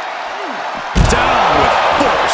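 A heavy body slams hard onto the floor with a loud thud.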